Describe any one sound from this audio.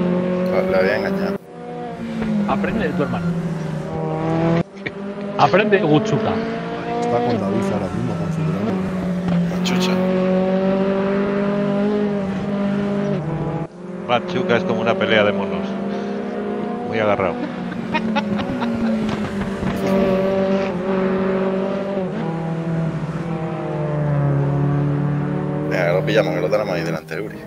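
A racing car engine roars, revving up and down as it shifts gears.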